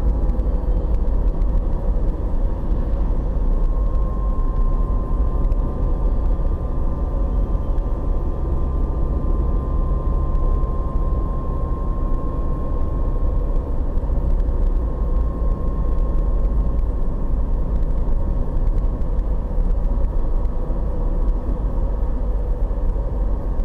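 A car's engine and tyres rumble from inside as it drives at speed on an asphalt road.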